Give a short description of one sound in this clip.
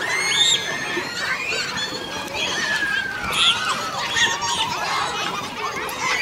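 Water splashes as a canoe tips over.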